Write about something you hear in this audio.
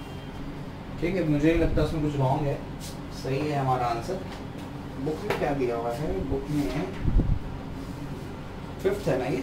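A man speaks calmly and close by, explaining.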